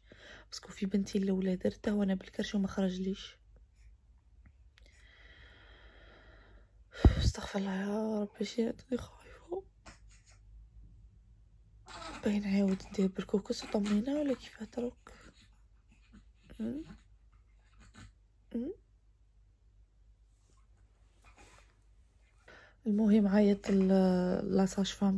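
A young woman talks close by, in a tired, complaining voice.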